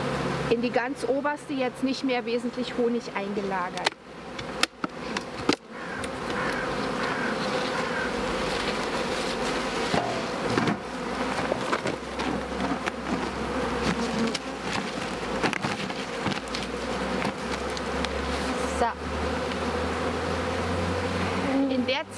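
Bees buzz steadily around a hive.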